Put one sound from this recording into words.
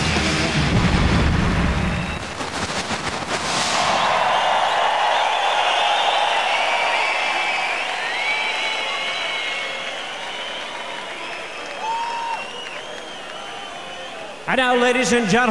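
A large crowd cheers and whistles in a vast echoing arena.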